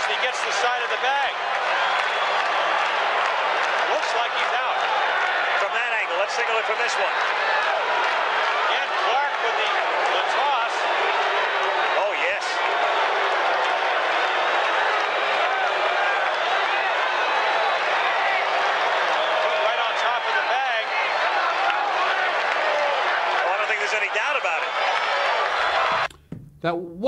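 A crowd cheers and roars in a large stadium.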